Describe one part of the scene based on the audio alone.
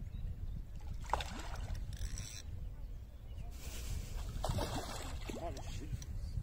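A swimming animal splashes briefly in water nearby.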